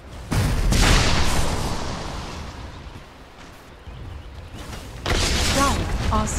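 Magical blasts whoosh and crackle in bursts.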